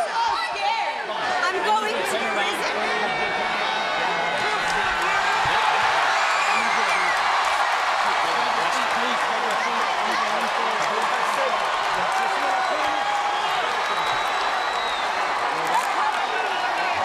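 A large crowd cheers and shouts loudly in a big arena.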